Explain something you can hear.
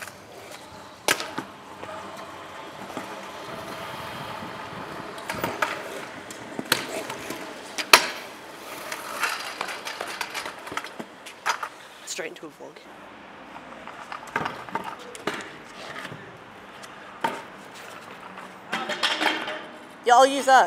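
Scooter wheels roll and rumble on concrete.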